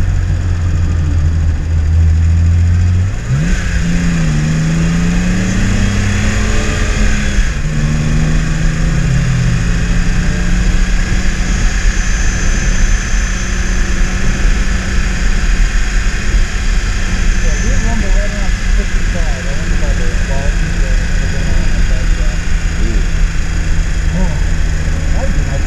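A car engine revs up and shifts gears as the car speeds up.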